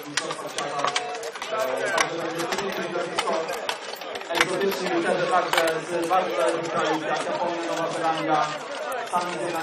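A crowd of men and women chatters outdoors.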